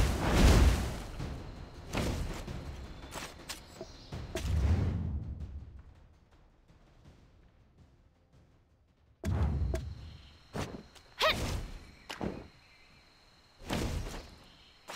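Game sound effects whoosh and thud in short bursts.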